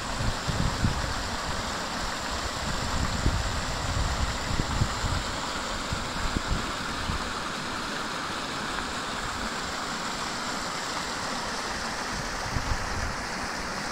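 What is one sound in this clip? Water splashes and rushes down a small weir.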